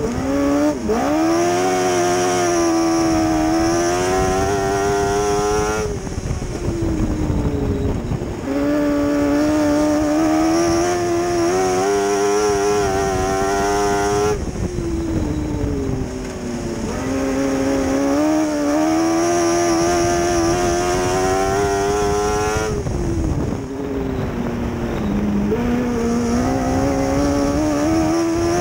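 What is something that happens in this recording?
A race car engine roars loudly close by, rising and falling in pitch as it revs and eases off.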